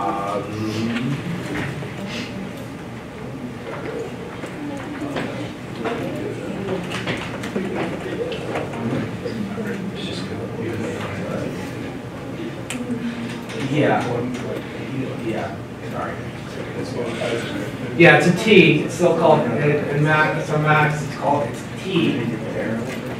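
An elderly man lectures calmly in a large room, heard from a distance.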